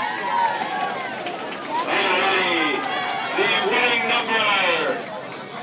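A crowd of people talks and cheers in an echoing room.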